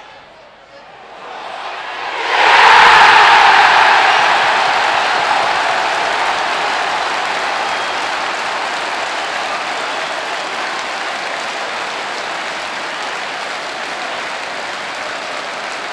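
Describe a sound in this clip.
A large stadium crowd erupts into a loud roaring cheer that slowly fades.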